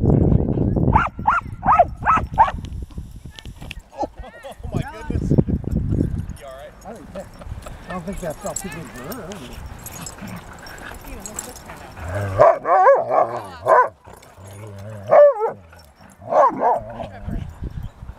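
Dogs bark and yip while playing.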